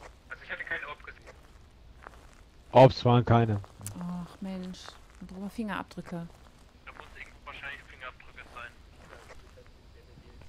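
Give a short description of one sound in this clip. A woman talks with animation into a headset microphone, heard close.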